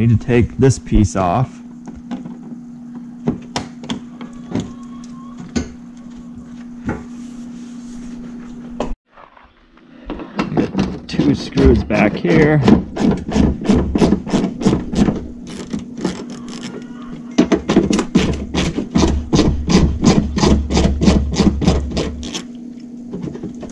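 A screwdriver scrapes and clicks against plastic trim.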